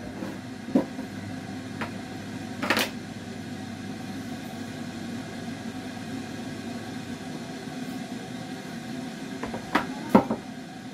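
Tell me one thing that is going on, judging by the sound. Cups and containers knock and clink on a counter.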